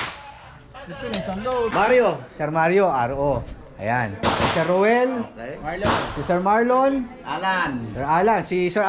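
A middle-aged man speaks with animation close by.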